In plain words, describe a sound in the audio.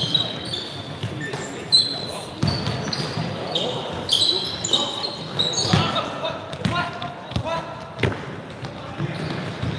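Men shout and call out across a large echoing gym.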